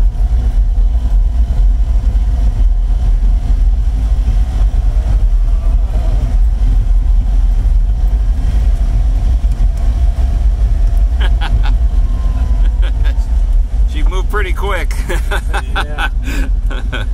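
A small car engine rumbles and hums steadily from inside the car.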